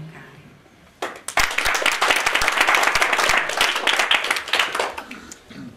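A small group of people applauds.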